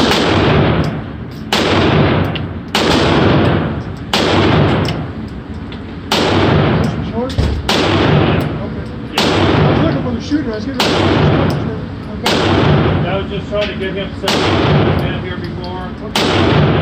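Pistol shots bang loudly and echo in a large hall, one every second or two.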